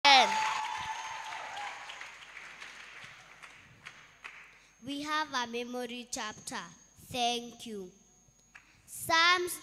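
Young children sing together into microphones in a large echoing hall.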